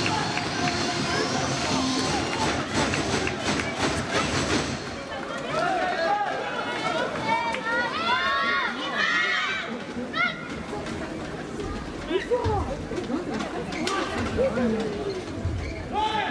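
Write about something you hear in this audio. A large crowd murmurs and cheers in an echoing hall.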